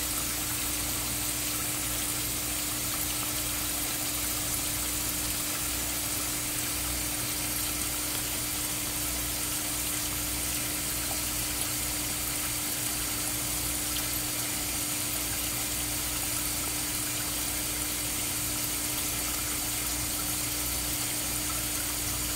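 Water trickles and gurgles steadily through a pipe.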